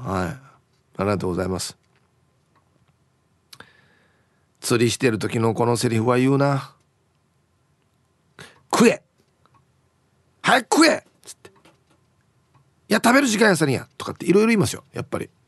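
A man speaks with animation, heard through a radio broadcast.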